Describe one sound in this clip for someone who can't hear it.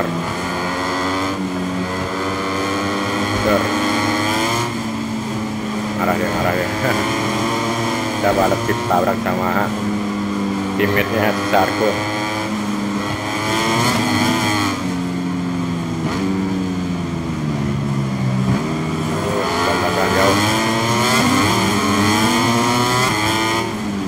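Racing motorbike engines whine loudly, rising and falling in pitch as gears shift.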